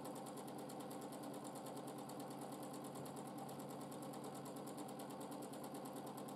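A sewing machine runs steadily with a fast, even stitching rhythm.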